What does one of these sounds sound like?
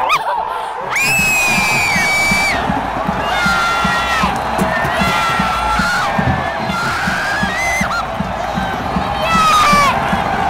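A crowd of fans chants and cheers loudly in an open stadium.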